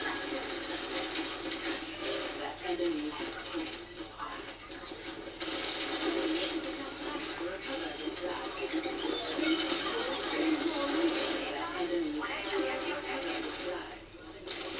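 Gunfire and explosions from a video game play through a loudspeaker.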